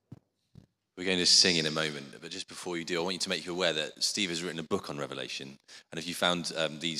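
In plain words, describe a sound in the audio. A man speaks with animation into a microphone, heard through a loudspeaker.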